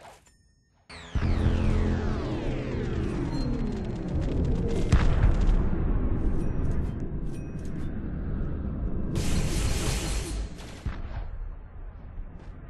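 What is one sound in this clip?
Game ability effects whoosh and boom loudly.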